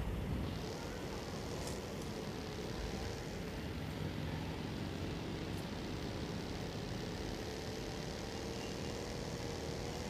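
A buggy engine roars steadily as it drives over rough ground.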